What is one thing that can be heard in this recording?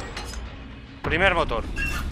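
An axe strikes a wooden wall with a thud.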